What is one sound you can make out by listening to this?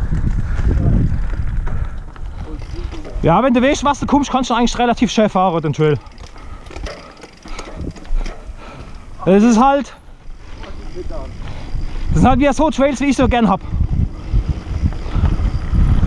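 Bicycle tyres roll and crunch over a dirt trail covered in dry leaves.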